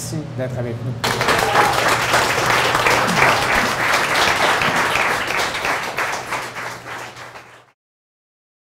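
A crowd applauds and cheers loudly, then fades away.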